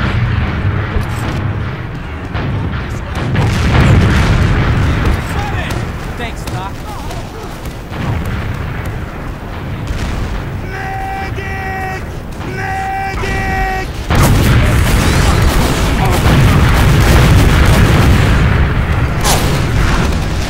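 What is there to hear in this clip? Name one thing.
Rockets launch and explode with deep booms.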